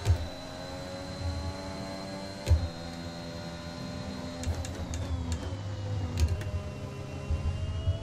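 A racing car engine screams at high revs, then drops in pitch as it slows.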